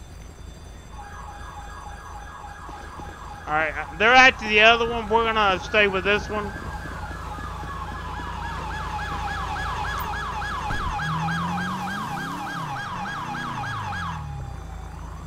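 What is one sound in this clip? A police siren wails steadily nearby.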